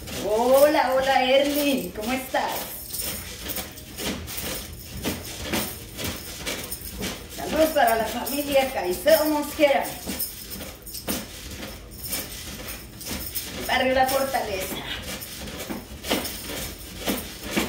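A mini trampoline thumps and creaks rhythmically as a person bounces on it.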